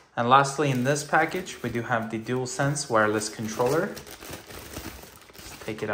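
Plastic wrapping crinkles as it is pulled open by hand.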